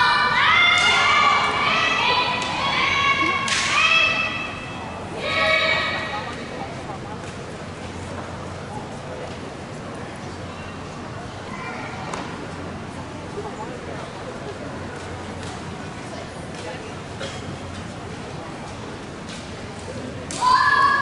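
Young women shout sharp, drawn-out cries in a large echoing hall.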